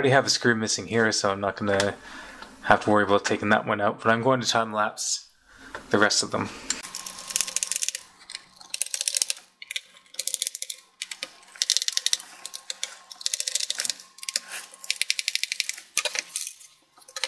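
A small screwdriver scrapes and clicks as it turns screws.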